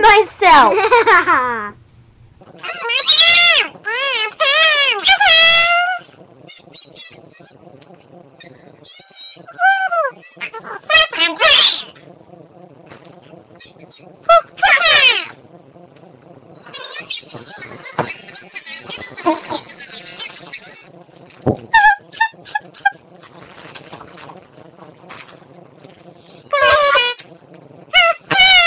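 Young girls talk playfully close to a microphone.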